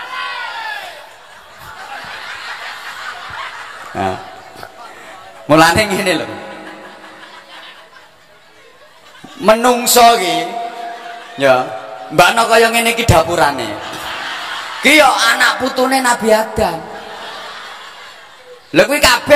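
A large crowd laughs.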